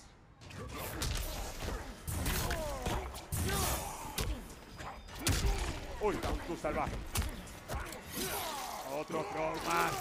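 Heavy punches and kicks land with sharp, thudding blows.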